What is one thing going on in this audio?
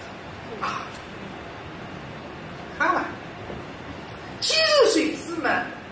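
A woman speaks in short, lively bursts through a microphone.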